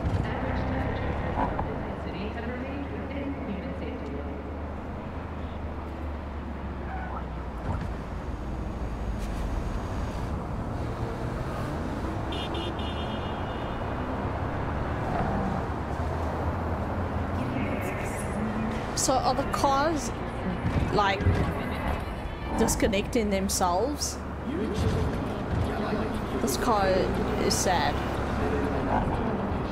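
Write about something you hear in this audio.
A young woman talks through a microphone.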